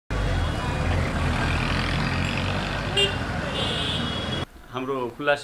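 Street traffic rumbles steadily with motorbike engines passing.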